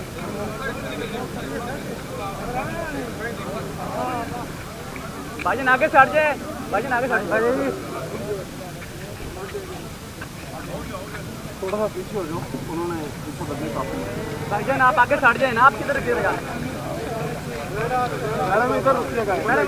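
A crowd of men talks and murmurs outdoors.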